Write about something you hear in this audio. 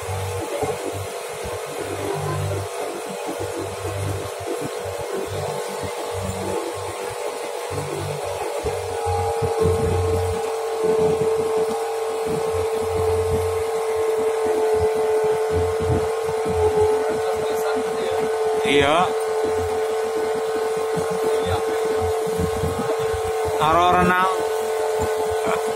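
A boat motor drones steadily close by.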